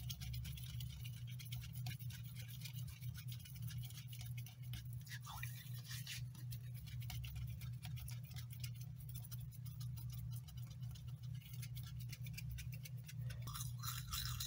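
Soapy hands rub and squelch together.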